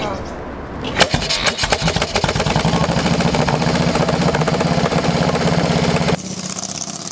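A motorcycle engine starts up and runs with a loud, rapid rumble.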